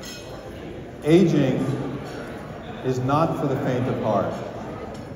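A man speaks calmly through a microphone and loudspeakers in a large room.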